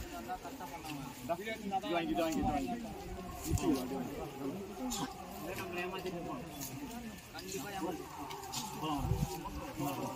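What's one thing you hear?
A crowd of men talk and shout excitedly outdoors close by.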